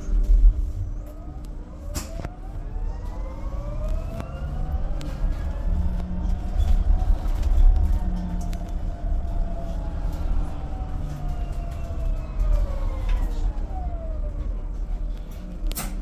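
A bus motor whines, rising in pitch and then slowly falling away.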